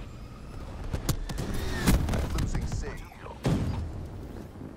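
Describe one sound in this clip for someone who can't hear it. Explosions boom from an air strike.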